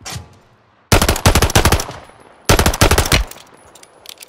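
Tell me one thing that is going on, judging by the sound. Pistol shots ring out in quick bursts.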